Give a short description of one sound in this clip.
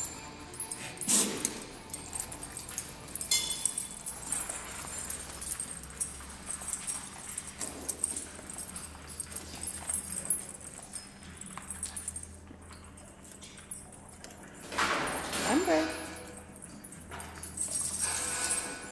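Dog paws scrabble on a hard floor.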